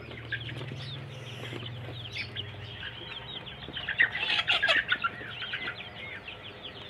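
Chickens peck at grain in a bowl.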